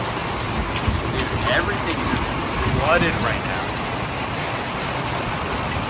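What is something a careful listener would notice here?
Rain patters on a metal surface.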